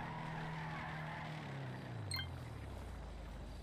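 A car engine hums and fades as the car drives away.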